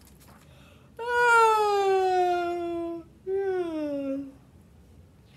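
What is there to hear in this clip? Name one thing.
A woman draws out a long, high whining plea, then a falling cry.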